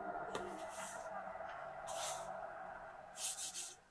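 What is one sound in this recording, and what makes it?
A woman mixes flour by hand in a metal bowl.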